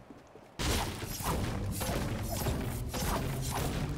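A pickaxe chops repeatedly into a tree trunk.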